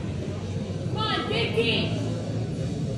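A man shouts encouragement loudly nearby.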